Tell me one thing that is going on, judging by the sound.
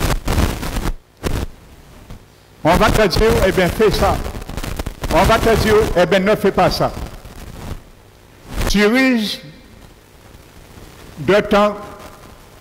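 An older man preaches with animation through a headset microphone in a slightly echoing room.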